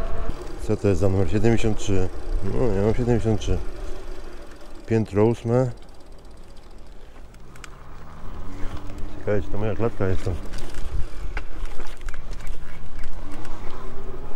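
Bicycle tyres rumble over paving stones.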